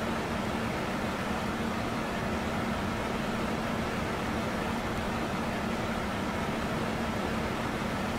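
Jet engines hum steadily inside an aircraft cabin.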